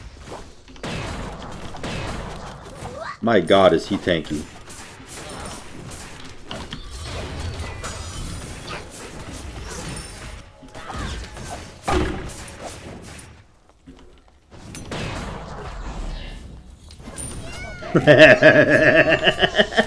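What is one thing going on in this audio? Game spells burst and clash.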